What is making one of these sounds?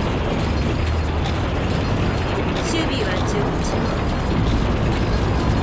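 A tank engine rumbles steadily as it drives along a road.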